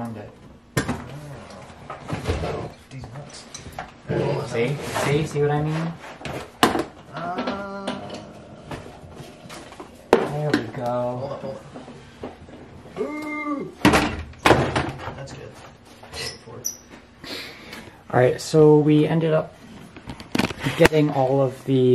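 A car seat knocks and thuds against metal.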